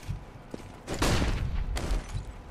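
A flashbang grenade bursts with a loud bang.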